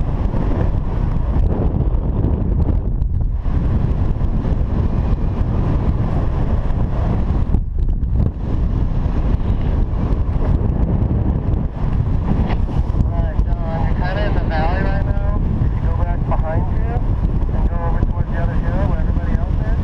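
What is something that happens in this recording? Wind rushes loudly and steadily past outdoors.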